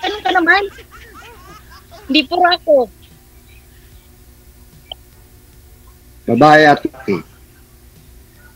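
A woman talks over an online call.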